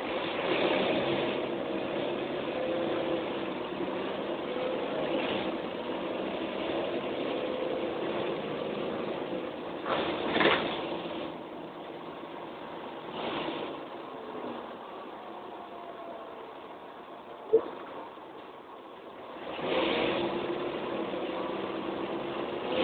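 A bus engine hums and whines steadily while driving.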